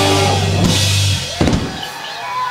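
A rock band plays loudly on electric guitars and drums, then stops.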